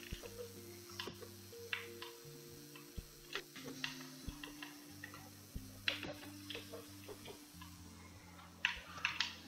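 Video game music plays with bleeping synth tones.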